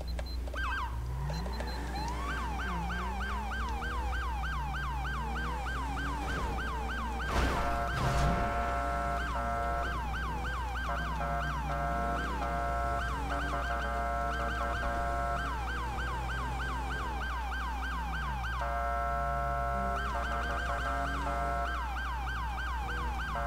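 A police siren wails rapidly up and down.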